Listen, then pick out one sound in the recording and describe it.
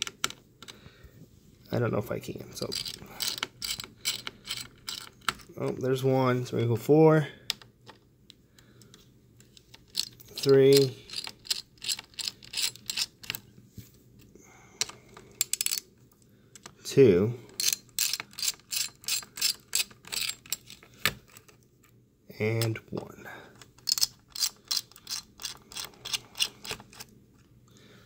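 A screwdriver clicks rapidly as it turns screws.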